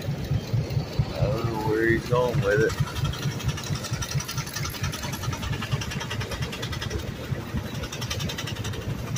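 A steam engine chugs in rapid, steady beats close by.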